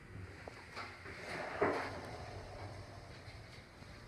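Elevator doors slide open with a low rumble.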